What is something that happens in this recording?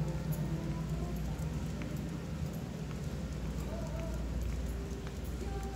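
A dog's claws tap on a hard floor.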